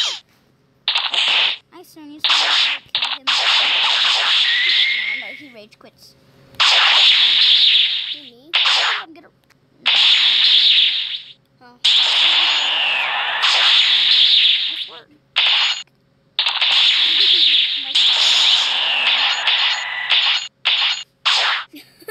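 Punches and kicks land with sharp, rapid hitting sounds in a fast fight.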